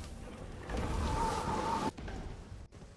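A magical energy blast roars in a video game.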